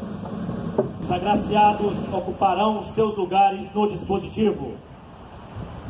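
A man speaks loudly through a microphone and loudspeaker, outdoors.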